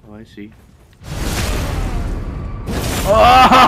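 A blade swings and slashes with a heavy whoosh.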